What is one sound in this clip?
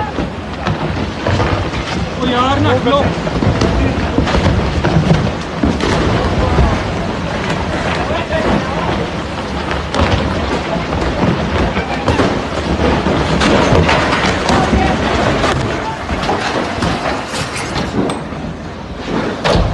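Boulders crash and tumble down a mountainside with loud rumbling and cracking.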